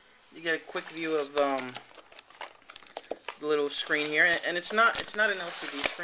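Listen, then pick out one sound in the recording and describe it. A device is pulled from crinkling plastic packaging.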